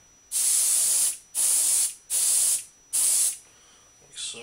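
An airbrush hisses in short bursts of spray.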